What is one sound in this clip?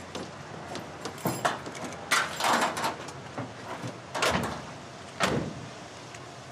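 Heavy footsteps thud on the metal floor of a van.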